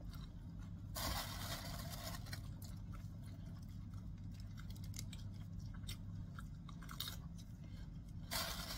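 Small rustling and crinkling sounds come from something handled close by.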